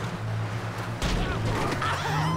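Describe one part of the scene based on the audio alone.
A truck thumps as it bumps onto a road.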